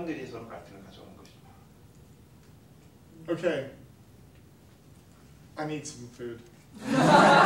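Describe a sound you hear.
A middle-aged man speaks calmly to a room.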